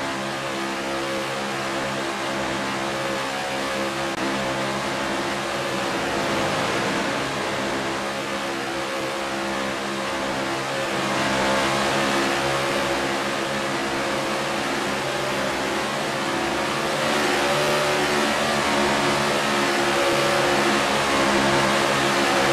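Stock car engines drone at racing speed.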